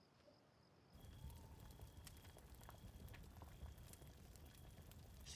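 A fire crackles and pops.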